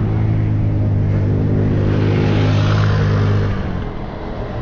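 A city bus engine rumbles nearby.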